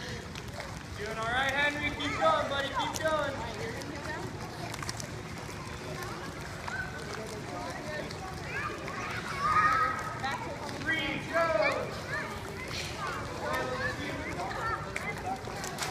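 Children shout and call out playfully, heard outdoors.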